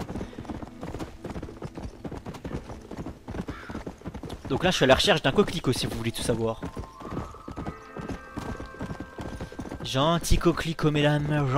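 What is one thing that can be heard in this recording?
A horse gallops, its hooves thudding quickly and steadily on dry ground.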